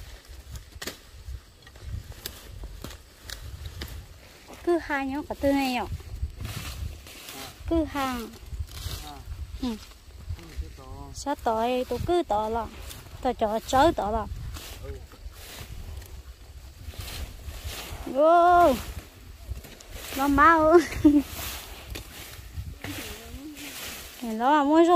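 Plants rustle and snap as they are pulled and cut.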